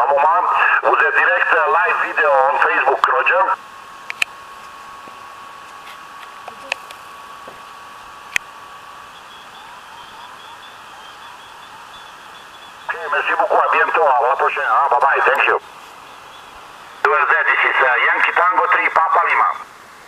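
Voices come in bursts over a radio loudspeaker, thin and crackly.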